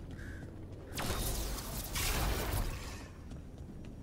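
A magic spell crackles with a burst of electric noise.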